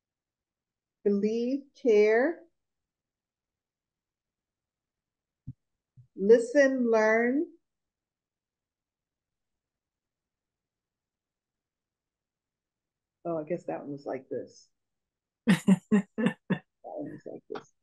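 An older woman speaks calmly over an online call.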